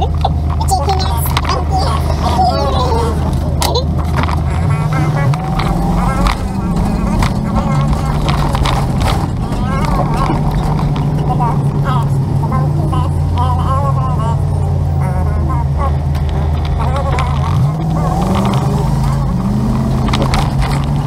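A vehicle engine hums steadily and shifts pitch as it speeds up.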